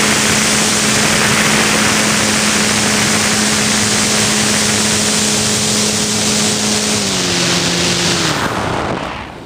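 A small propeller motor hums steadily, then drops in pitch and stops.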